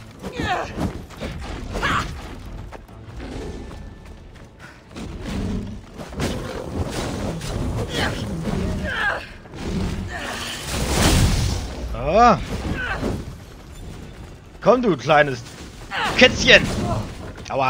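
A blade swishes and strikes with fiery whooshes.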